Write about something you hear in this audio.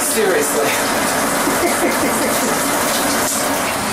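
Water sprays from a shower head onto skin.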